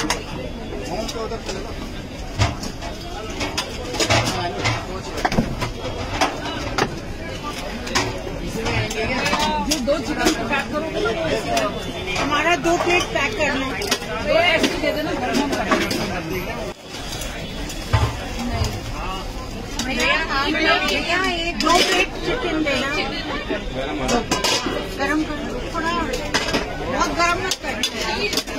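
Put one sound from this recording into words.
Metal steamer lids and trays clank.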